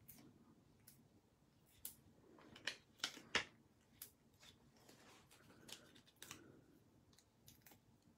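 Small stickers peel off a backing sheet with faint ticks.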